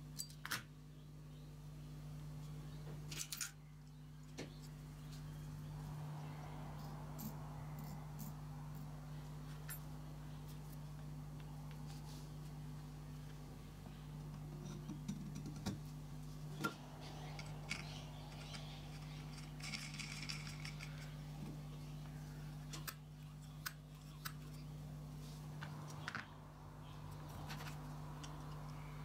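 Small metal parts click and tap as a model engine is handled.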